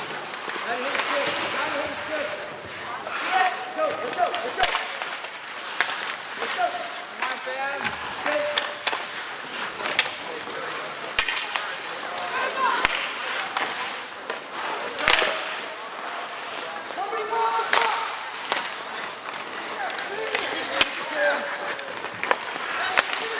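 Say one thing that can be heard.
Young players shout and call out across an echoing rink.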